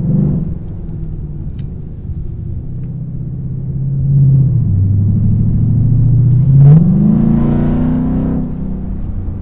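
A car engine roars as the car accelerates hard, its pitch rising and dropping with each gear change.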